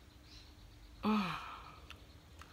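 A woman makes a short drawn-out sound of doubt.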